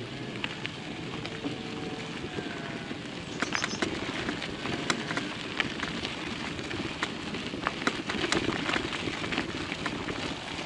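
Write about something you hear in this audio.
Footsteps crunch on a gravel path.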